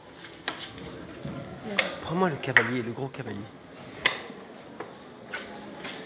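Chess pieces click on a wooden board.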